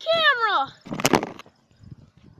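A plastic bottle bursts with a loud pop outdoors.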